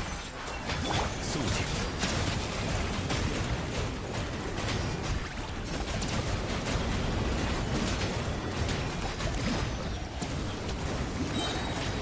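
Game spells crackle and burst in rapid bursts.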